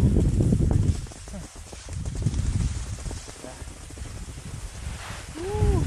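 Skis hiss and scrape over snow close by.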